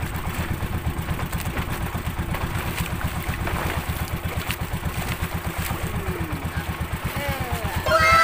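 A boat engine chugs steadily.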